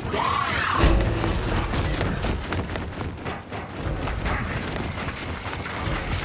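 Heavy armoured footsteps thud.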